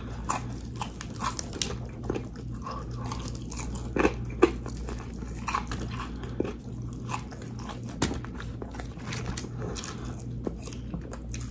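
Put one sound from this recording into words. Crispy fried chicken crunches as fingers tear it apart close by.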